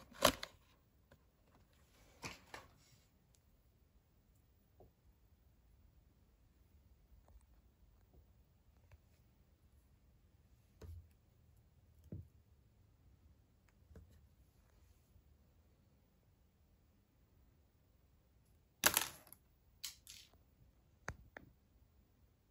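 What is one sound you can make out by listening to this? Hands handle and tap against plastic doll boxes.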